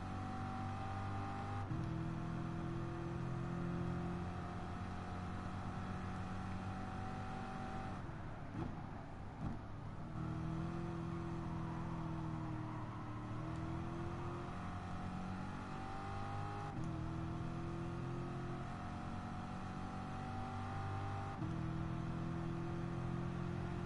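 A racing car engine roars steadily, with the pitch climbing through the gears.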